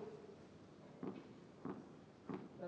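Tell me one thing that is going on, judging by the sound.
A padel ball bounces on a hard court floor.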